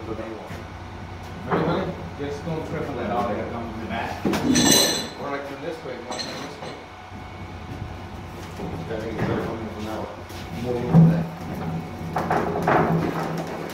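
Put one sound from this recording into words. A metal frame creaks and clanks as it is tipped over.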